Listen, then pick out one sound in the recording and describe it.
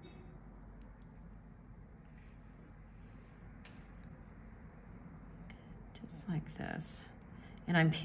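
Small metal jewellery parts click softly between fingers.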